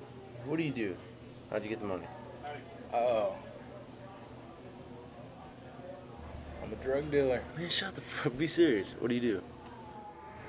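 A young man speaks casually and cheerfully nearby.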